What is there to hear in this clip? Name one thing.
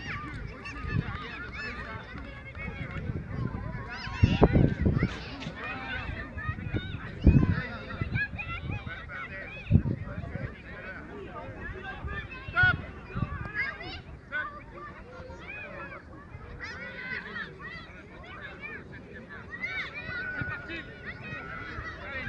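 Children shout and call out at a distance across an open field.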